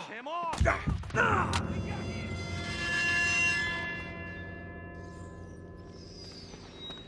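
A loud explosion booms and rings out slowly.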